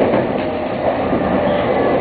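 A passing train rushes by close alongside.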